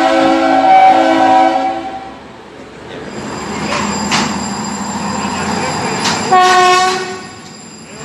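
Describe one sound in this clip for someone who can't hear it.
A train horn blows loudly in long blasts.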